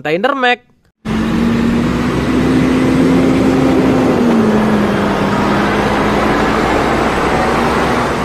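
A truck engine rumbles steadily as a lorry drives slowly past.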